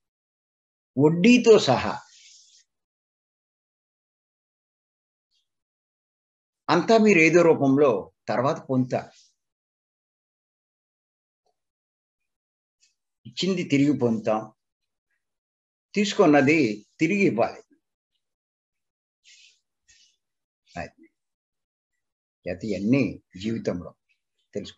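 An elderly man speaks calmly in short bursts through an online call, with pauses between.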